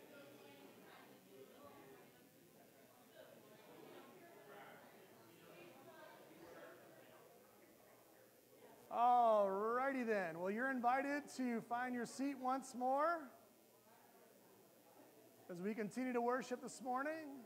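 A crowd of men and women chatters and greets one another in a large echoing room.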